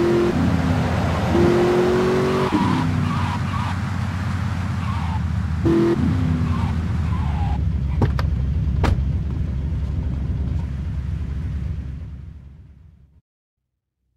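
A car engine hums and revs steadily, then fades away.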